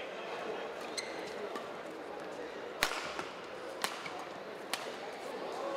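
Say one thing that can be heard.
Rackets smack a shuttlecock in a quick rally.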